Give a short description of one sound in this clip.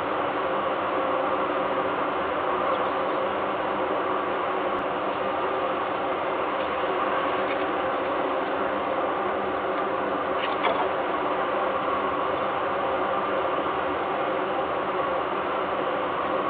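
Wind rushes steadily across the microphone outdoors.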